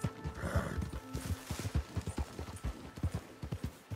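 Brush rustles as a horse pushes through it.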